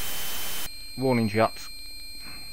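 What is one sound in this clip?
A laser weapon fires with a short, falling zap.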